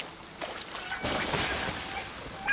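An icy magical blast bursts with a whoosh.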